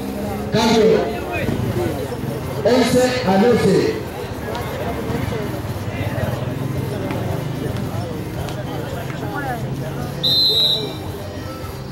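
A crowd of young men chatters and shouts outdoors.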